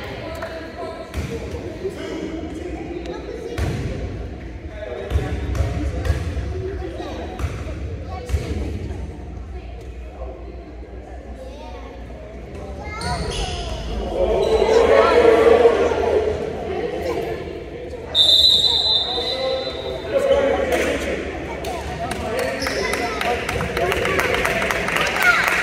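A crowd of children and adults chatter and call out in a large echoing gym.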